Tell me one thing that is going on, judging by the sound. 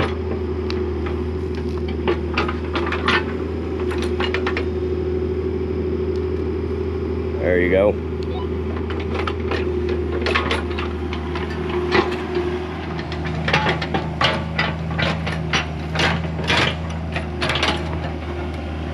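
Rocks and dirt clank and scrape against an excavator bucket.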